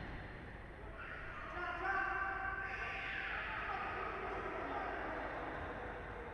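Sneakers squeak on a hard indoor court in an echoing hall.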